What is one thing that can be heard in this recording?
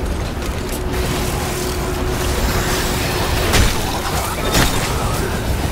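A heavy weapon fires in sharp blasts.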